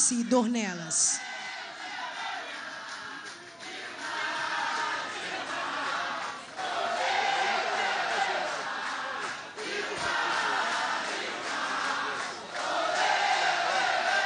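A large crowd cheers and chatters nearby.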